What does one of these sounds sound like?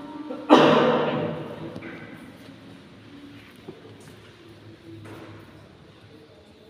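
A woman speaks quietly nearby in a large echoing hall.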